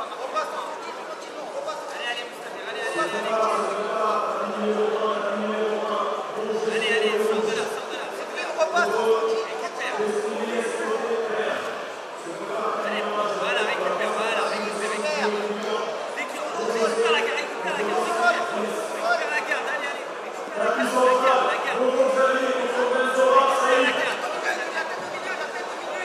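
Men shout loudly nearby in an echoing hall.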